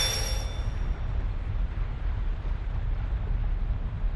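A column of fire roars with a low rumble.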